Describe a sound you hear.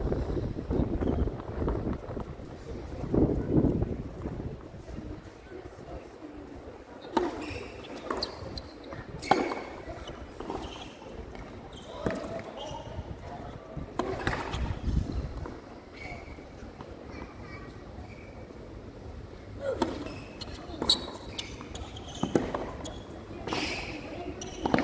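A tennis ball is struck sharply by rackets in a rally, with echoing pops.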